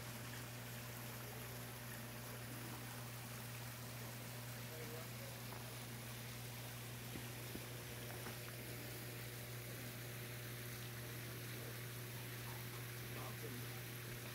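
A shallow stream trickles steadily over rocks.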